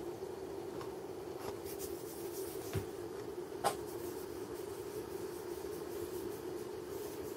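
A cat purrs close by.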